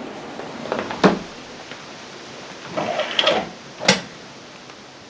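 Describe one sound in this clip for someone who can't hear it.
A glass door slides open with a knock.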